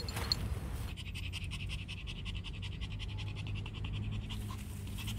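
A small dog pants rapidly up close.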